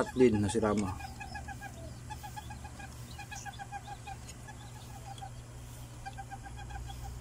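A chicken clucks softly in quick repeated notes.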